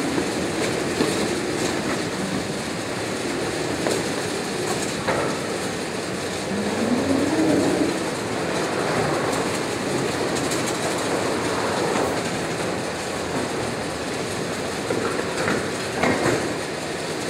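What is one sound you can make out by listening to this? Boxes knock now and then against the conveyor's rollers and rails.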